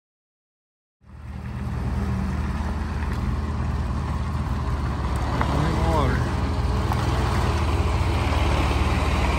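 A diesel dump truck engine rumbles.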